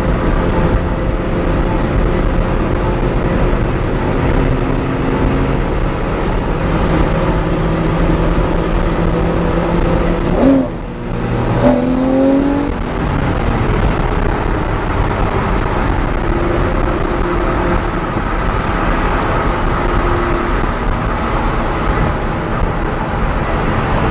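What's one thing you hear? Road and wind noise roars inside a car driving at highway speed, with tyres humming on asphalt.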